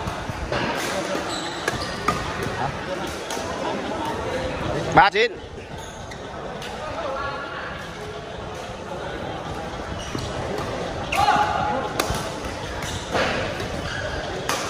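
Shuttlecocks are struck with sharp pops of badminton rackets.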